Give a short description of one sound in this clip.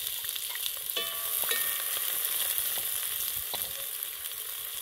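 A wooden spoon scrapes and stirs in a metal pot.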